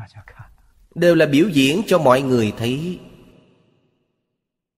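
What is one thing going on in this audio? An elderly man laughs.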